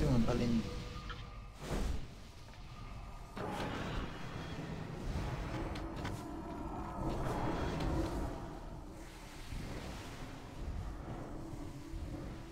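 Spell effects whoosh and crackle in a battle.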